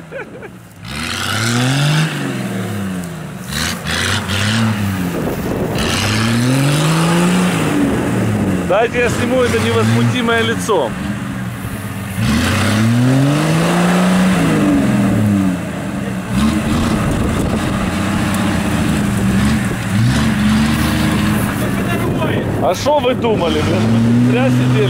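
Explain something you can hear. An engine revs hard, rising and falling again and again.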